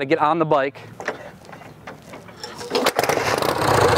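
A motorcycle engine is kicked over and starts.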